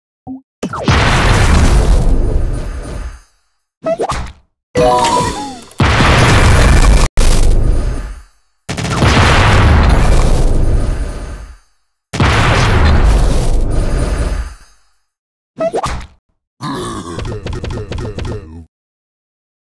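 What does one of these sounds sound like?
Loud booming blasts burst and crash again and again, each fading away.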